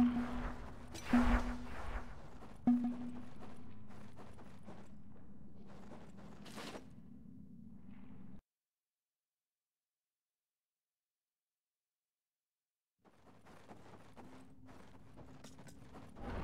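Blades clash and swoosh in a fight, with sharp hits.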